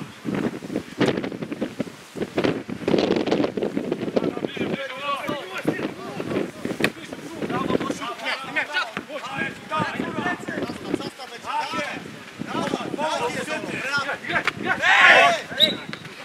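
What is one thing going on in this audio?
Footballers call and shout to each other across an open pitch outdoors.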